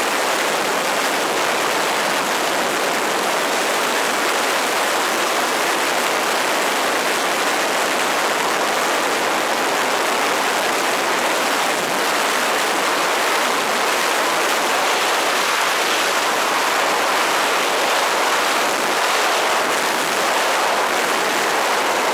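Strong wind roars steadily past in fast flight.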